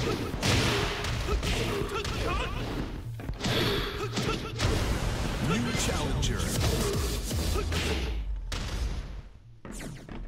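Game fighters thud and clash with punches and kicks.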